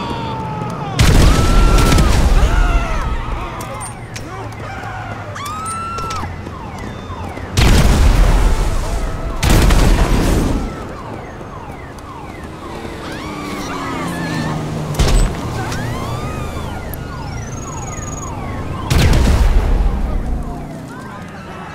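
Explosions boom loudly nearby and rumble away.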